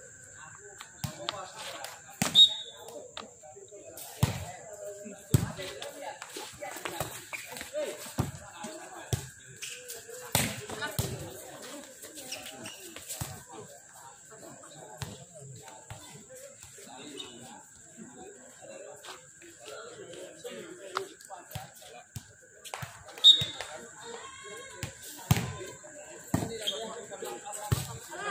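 A volleyball is struck with sharp slaps outdoors.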